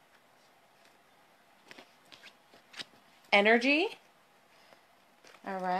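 A card is laid down on soft cloth with a faint rustle.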